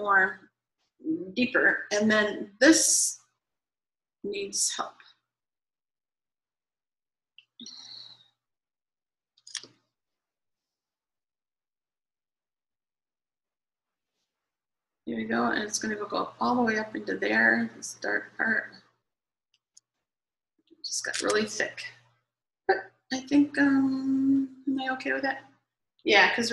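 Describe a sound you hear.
A middle-aged woman speaks calmly, close to a microphone, with pauses.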